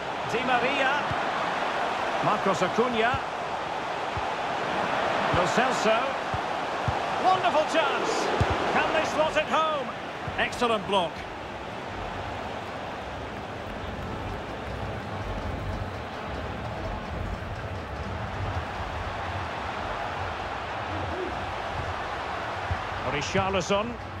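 A large stadium crowd roars and cheers steadily, with swells.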